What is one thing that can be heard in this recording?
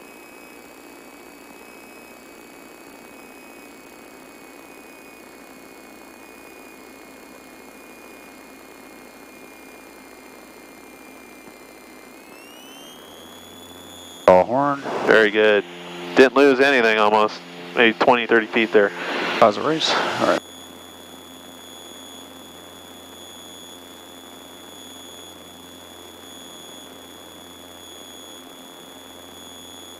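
A small propeller plane's engine drones steadily inside the cabin, its whine rising in pitch once.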